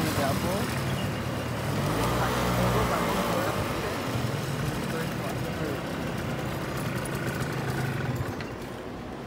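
A motor scooter engine runs with a low hum.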